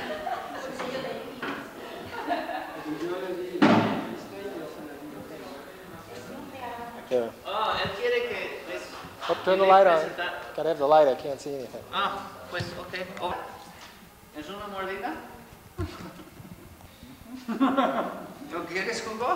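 Men talk with animation nearby, in a room with some echo.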